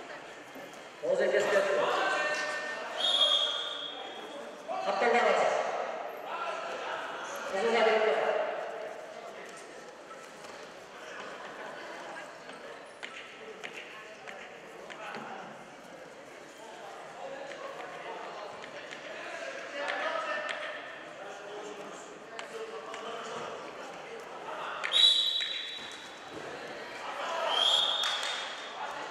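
A crowd of spectators shouts and cheers in an echoing hall.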